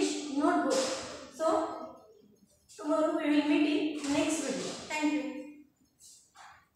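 A young woman speaks clearly and slowly, as if teaching, close by.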